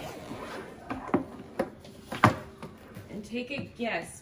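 A suitcase lid thuds and clicks as it opens.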